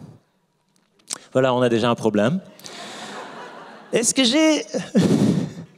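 A man speaks with animation into a microphone, heard through loudspeakers in a large room.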